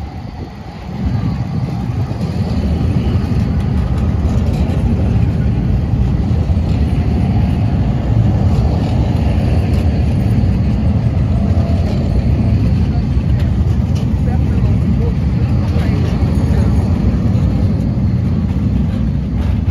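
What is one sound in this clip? A tram hums and rumbles close by as it rolls past on its rails.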